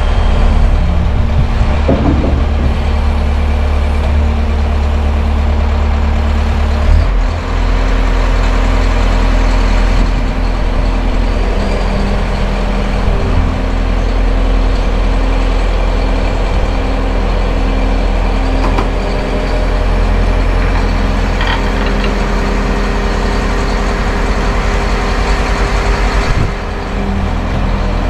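A nearby excavator engine rumbles steadily, rising and falling as it works.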